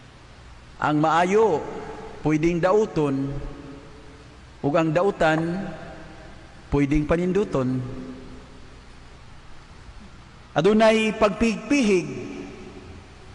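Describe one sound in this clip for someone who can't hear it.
A man speaks slowly into a microphone, in short phrases with pauses, in a large echoing hall.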